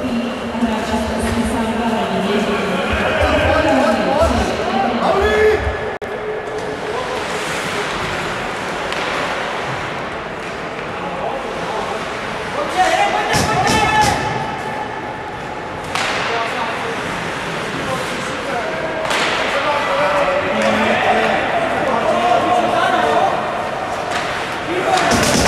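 Skates scrape and hiss on ice in a large echoing rink.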